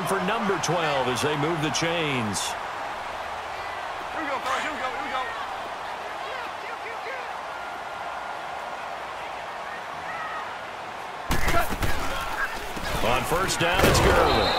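A large stadium crowd cheers and murmurs throughout.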